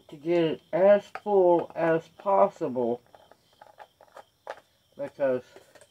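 A plastic bottle cap twists and clicks.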